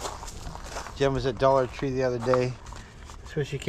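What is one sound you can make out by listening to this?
A middle-aged man talks calmly, close up.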